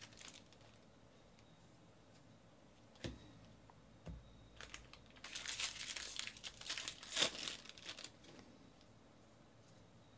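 Trading cards shuffle and slide against each other in hands.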